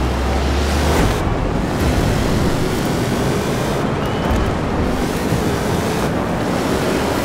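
Tyres crunch and skid on loose dirt.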